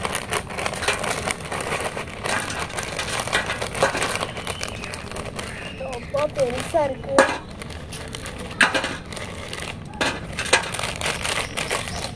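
Crisps clatter onto a metal plate.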